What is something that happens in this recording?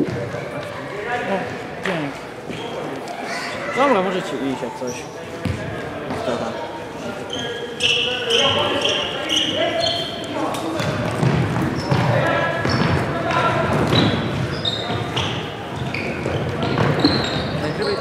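Sneakers squeak sharply on a hard floor.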